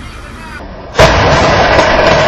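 A loud blast roars and crackles.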